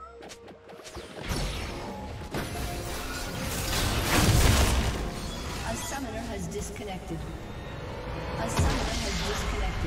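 Fantasy battle sound effects crackle and clash.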